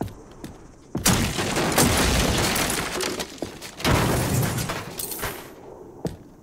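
A metal crate is opened with a loud clatter and whoosh.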